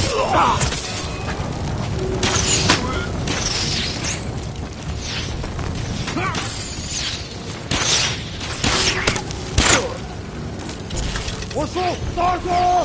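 Men shout and grunt in combat.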